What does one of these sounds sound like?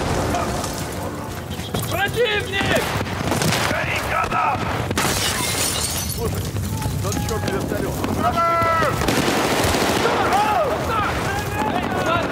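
Rapid gunfire bursts and cracks close by.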